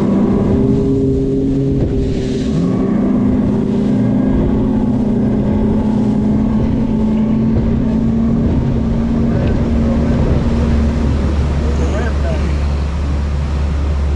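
A motorboat engine roars at high speed.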